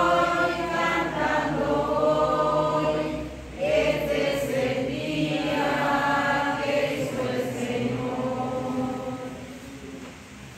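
A man chants slowly nearby.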